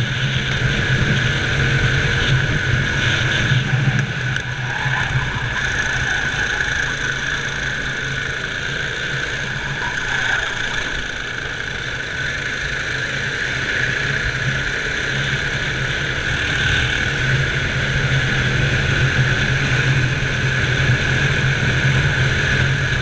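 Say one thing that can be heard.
Wind rushes past a moving kart.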